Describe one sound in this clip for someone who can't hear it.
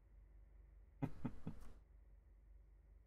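A young man speaks briefly and casually into a microphone, close by.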